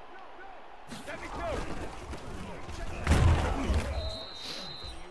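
A large stadium crowd roars.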